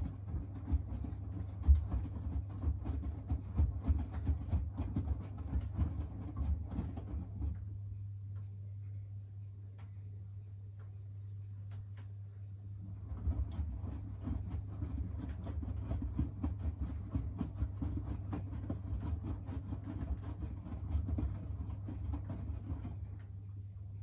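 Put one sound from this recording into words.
Laundry tumbles and thumps inside a washing machine drum.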